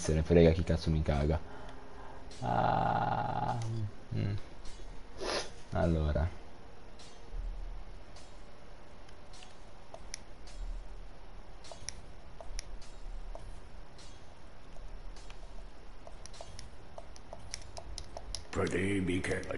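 Short game menu clicks sound as selections change.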